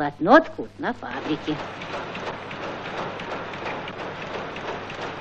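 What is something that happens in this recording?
Weaving machines clatter rapidly and steadily.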